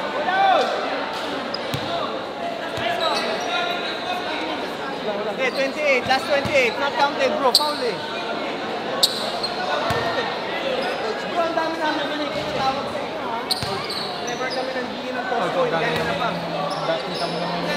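A large crowd chatters and cheers in a big echoing hall.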